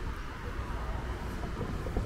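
A car drives by on the street.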